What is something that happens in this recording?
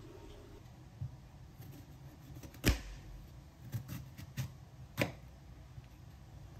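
A knife cuts through a pear and knocks on a cutting board.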